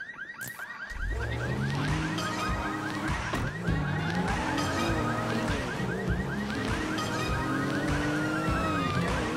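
A car engine starts and revs as the car pulls away and speeds up.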